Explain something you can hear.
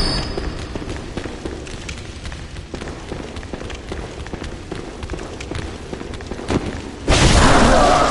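Footsteps patter quickly on a stone floor.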